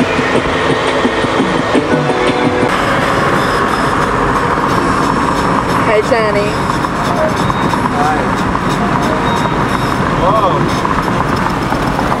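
A car engine and tyres hum steadily on the road, heard from inside the car.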